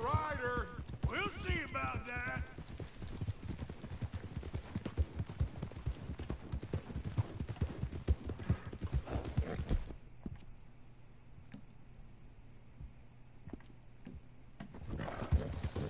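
Horse hooves pound steadily on a dirt track at a gallop.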